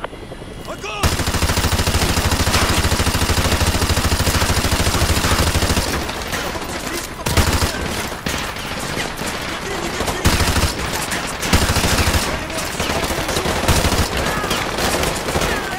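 A machine gun fires long, rapid bursts at close range.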